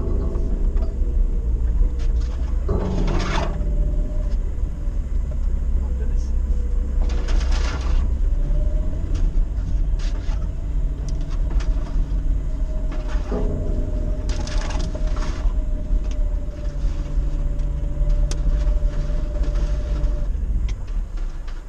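An engine hums and labours steadily as a vehicle drives slowly along a rough track.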